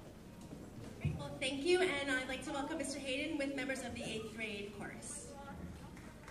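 A woman speaks through a microphone in a large echoing hall.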